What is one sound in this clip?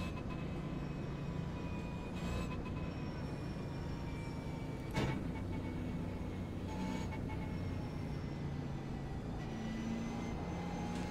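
A racing car engine roars steadily, shifting pitch as it accelerates and brakes.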